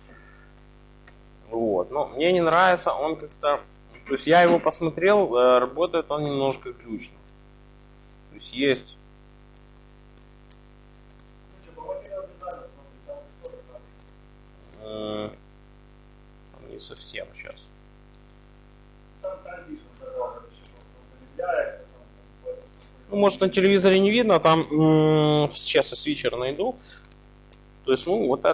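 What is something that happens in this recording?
A laptop keyboard clicks as keys are pressed.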